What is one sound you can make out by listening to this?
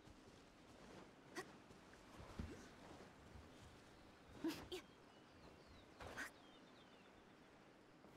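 A sword swishes through the air in quick strikes.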